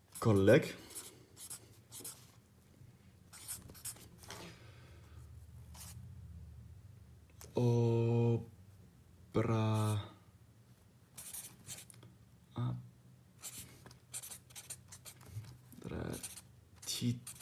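A pen scratches on paper while writing.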